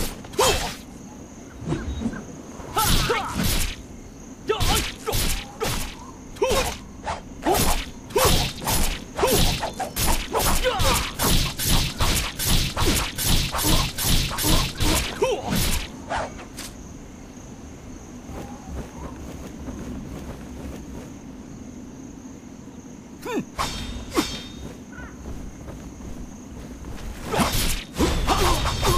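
Sword blows and slashing strikes land in quick succession.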